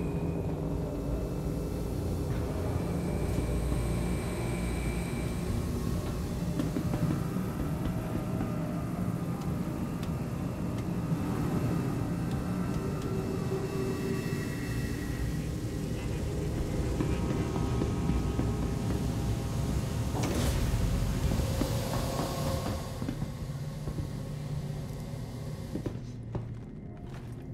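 A deep mechanical hum drones steadily.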